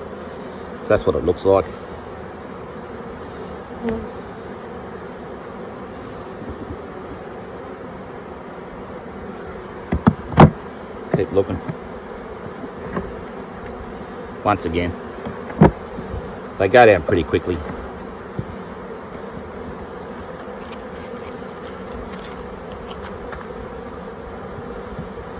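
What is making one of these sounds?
Bees buzz steadily close by.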